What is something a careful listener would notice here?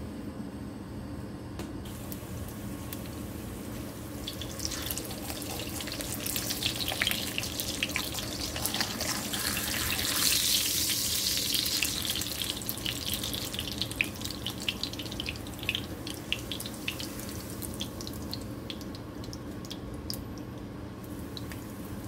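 Hot oil sizzles and crackles in a frying pan.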